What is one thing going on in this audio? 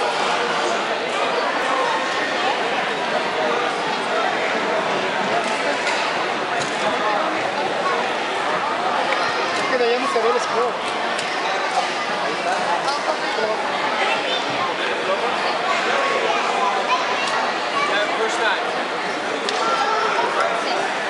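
A large crowd chatters loudly in a big echoing hall.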